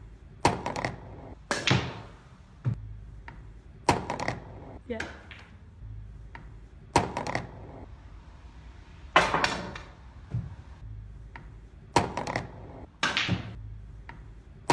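Pool balls drop into a pocket and rattle inside it.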